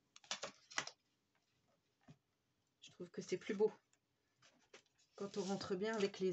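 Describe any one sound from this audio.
Paper rustles and creases as hands fold it.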